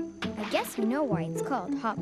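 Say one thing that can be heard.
A young girl speaks calmly.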